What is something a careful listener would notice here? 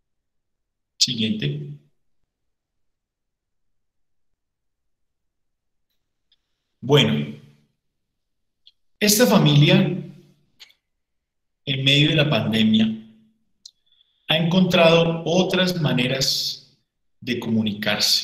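A man speaks calmly through an online call, in bursts with long pauses.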